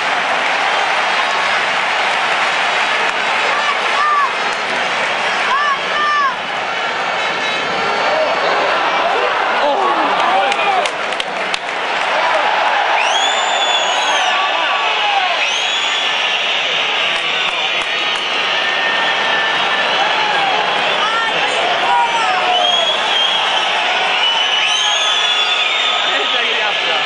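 A large stadium crowd roars and chants steadily from all around.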